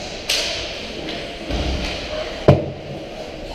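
A hockey puck cracks sharply against a stick.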